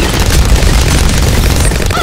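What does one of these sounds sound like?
A loud cartoon explosion booms.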